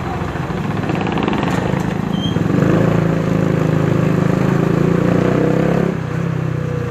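A motor tricycle putters past.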